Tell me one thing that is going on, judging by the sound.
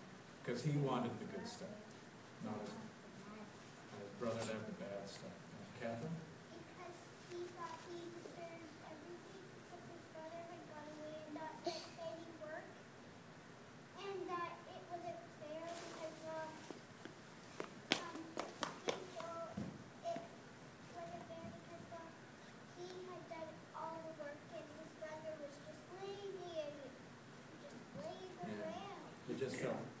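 Children's voices murmur and chatter nearby.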